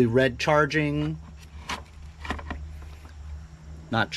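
A plastic battery pack clicks as it is pulled from a charger.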